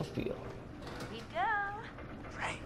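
A young woman speaks briefly with a smile.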